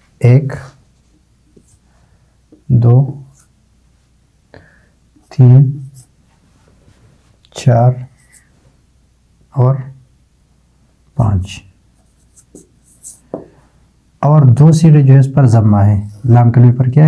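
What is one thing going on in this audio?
A man speaks in short, calm phrases close to a microphone, with pauses between them.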